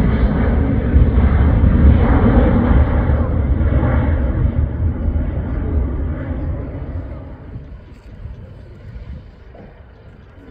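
A jet plane roars overhead and fades away.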